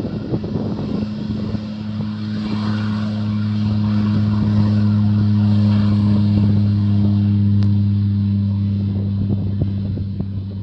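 A small propeller plane's engine drones steadily in the distance.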